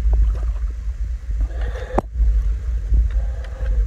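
A net splashes into the water.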